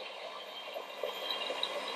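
An electric mixer whirs as it beats in a bowl.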